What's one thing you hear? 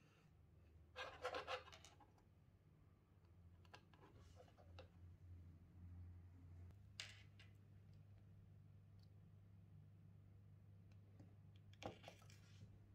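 Small plastic parts click and rustle as wires are plugged into a board.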